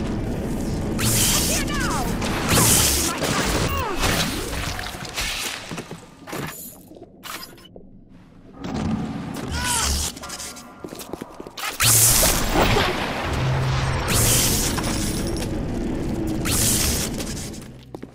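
Objects whoosh loudly as they are flung through the air.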